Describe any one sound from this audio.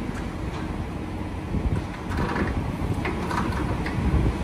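A metal fuel nozzle clanks against a truck's tank filler.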